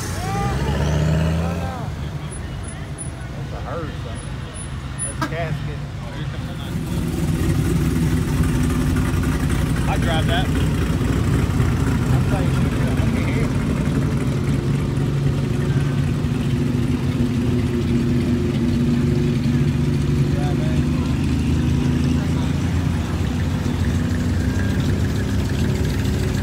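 Old car engines rumble as vehicles drive slowly past nearby.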